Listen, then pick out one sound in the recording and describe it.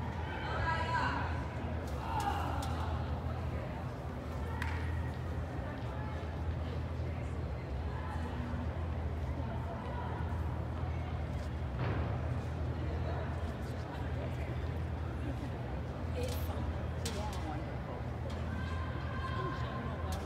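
Young women chatter and call out in a huddle, heard from a distance in a large echoing indoor hall.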